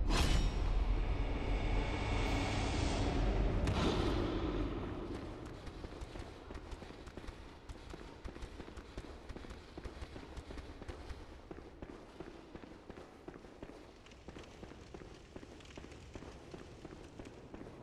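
Quick footsteps run on a hard stone floor.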